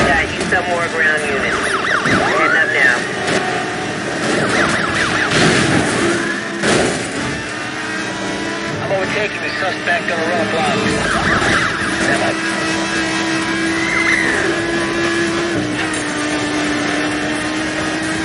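A sports car engine roars at high speed.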